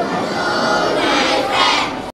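A group of young children sing together.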